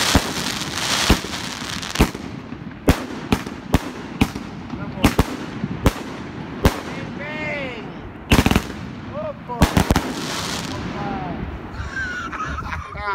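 Fireworks burst with sharp bangs and pops.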